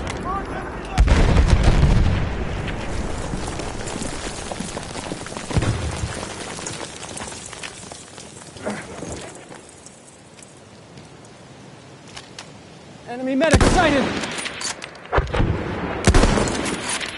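A sniper rifle fires sharp, loud shots.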